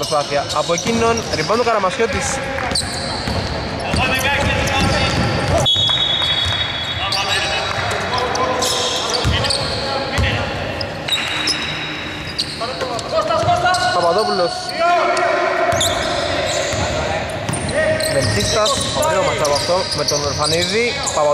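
Sneakers squeak on a hard court in a large echoing hall.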